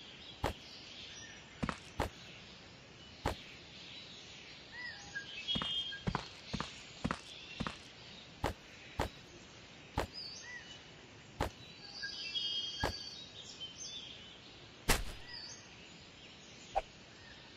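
Footsteps tap on hard pavement at an irregular pace.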